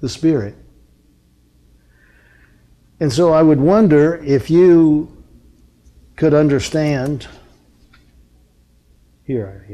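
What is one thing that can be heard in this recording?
An elderly man speaks slowly and deliberately into a microphone, with pauses between phrases.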